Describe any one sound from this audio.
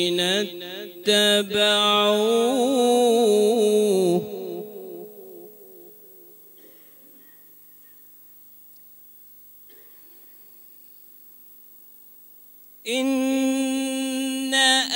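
A man chants a recitation in a long, melodic voice through a microphone, echoing in a large hall.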